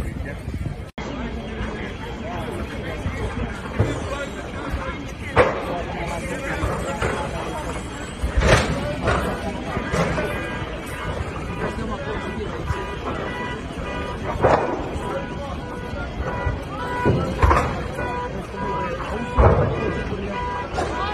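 A crowd of people talks and murmurs outdoors nearby.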